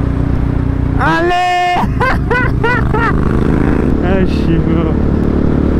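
A second motorcycle revs loudly close by.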